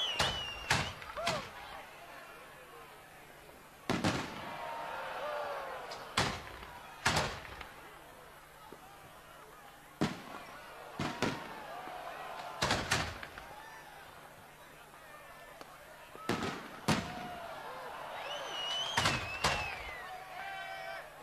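Rising fireworks whistle and shriek.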